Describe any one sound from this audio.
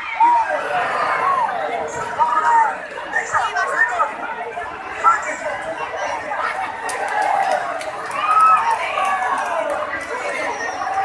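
A large outdoor crowd shouts and cheers excitedly.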